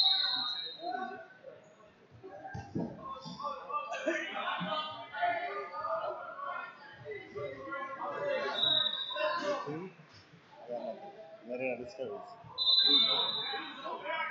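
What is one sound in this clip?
Wrestlers' shoes squeak on a mat.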